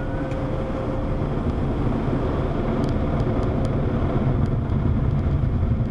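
Water sprays and patters against a car windshield.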